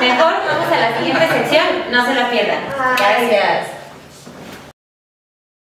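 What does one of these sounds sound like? A group of young men and women laugh together.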